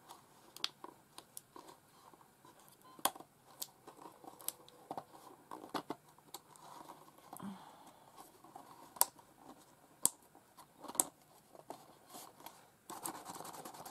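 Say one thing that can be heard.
Paper crinkles and rustles as it is folded.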